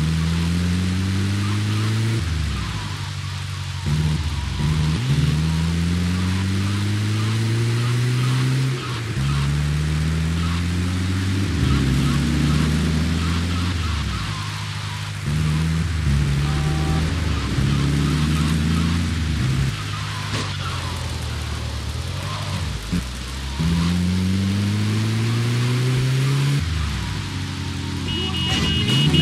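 An engine revs up and down repeatedly as a vehicle speeds along.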